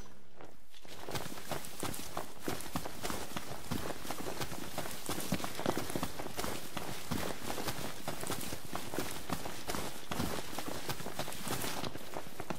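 Footsteps run through grass.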